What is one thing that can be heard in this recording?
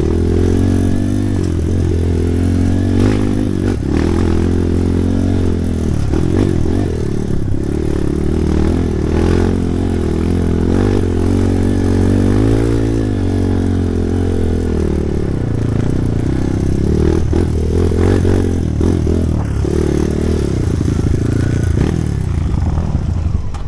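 Tyres crunch and bump over a rough dirt trail.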